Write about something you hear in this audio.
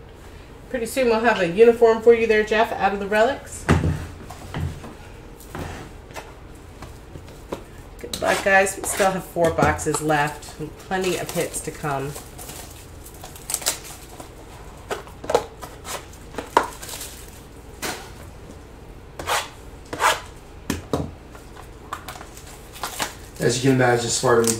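Card packs rustle and tap as hands open them.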